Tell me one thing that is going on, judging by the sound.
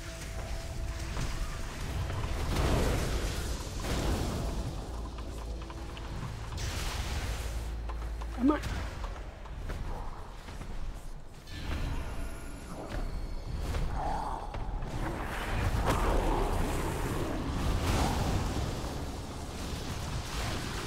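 Spell effects whoosh and crackle in a game.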